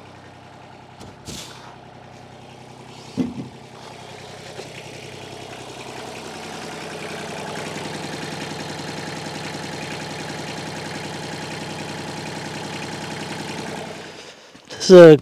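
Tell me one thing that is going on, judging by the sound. A tractor engine runs steadily nearby, growing a little louder.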